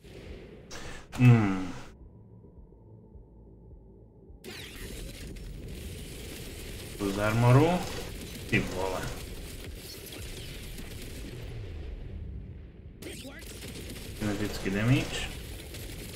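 A man speaks through a close microphone in short bursts, with animation.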